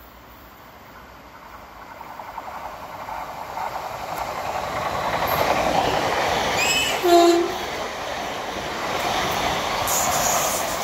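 A train approaches and roars past close by, growing steadily louder.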